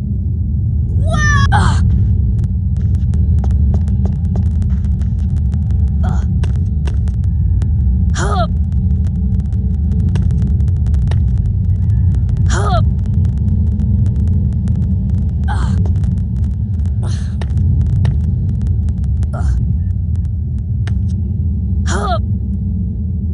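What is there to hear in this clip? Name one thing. Magical chimes twinkle in short rising and falling bursts.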